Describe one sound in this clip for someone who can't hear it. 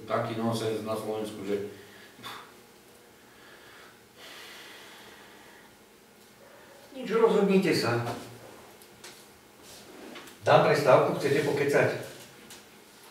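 A man speaks calmly nearby, in short bursts with pauses.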